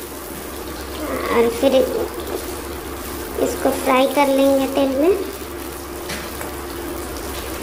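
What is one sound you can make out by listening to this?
A metal spatula scrapes and stirs vegetables in a wok.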